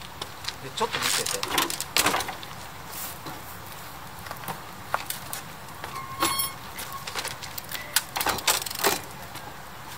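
Bicycle tyres thump and knock against a wooden ramp.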